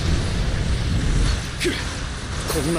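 A blast fires with a loud whoosh.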